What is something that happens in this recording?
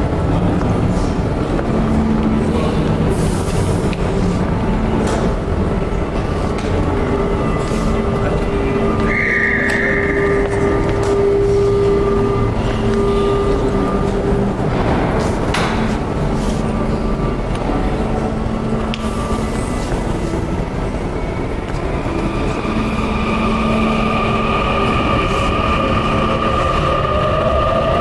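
Chess pieces knock now and then on boards.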